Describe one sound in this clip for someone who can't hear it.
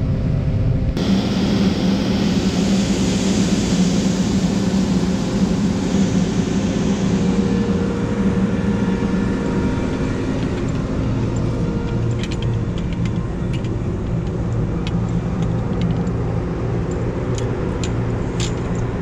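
A combine harvester's engine rumbles loudly nearby outdoors.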